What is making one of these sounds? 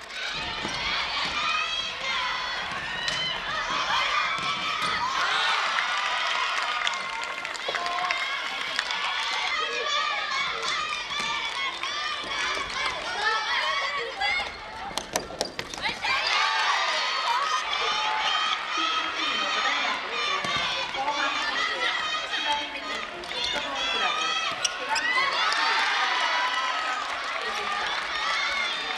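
A crowd of young girls cheers and shouts throughout in a large echoing hall.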